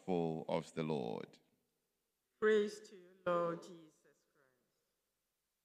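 A man sings a chant into a microphone in a reverberant hall.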